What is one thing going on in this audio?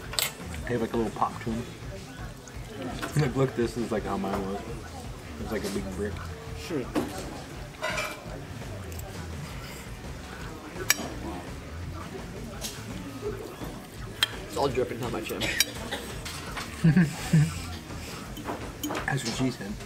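A woman slurps noodles loudly.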